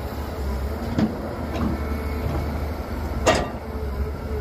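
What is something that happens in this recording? Dirt and rocks thud and clatter as an excavator bucket digs.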